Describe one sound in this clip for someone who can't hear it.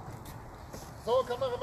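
A man speaks briefly at a distance outdoors.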